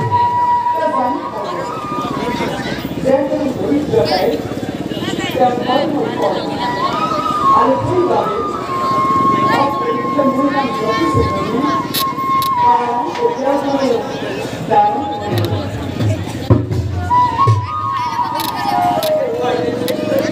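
Drums beat along with the music.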